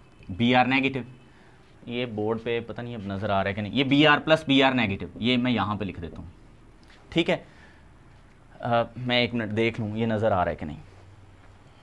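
A man explains calmly and clearly into a nearby microphone.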